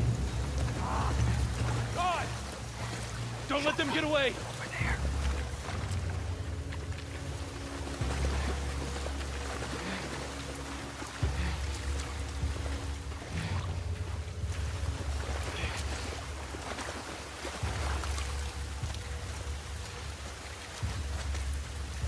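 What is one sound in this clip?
Tall grass rustles as people creep through it.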